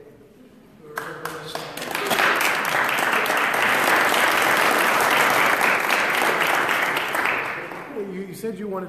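A crowd applauds loudly in a room.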